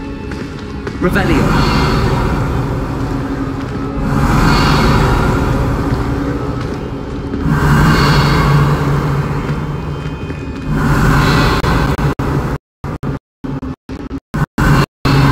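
A magic spell crackles and bursts with sparks.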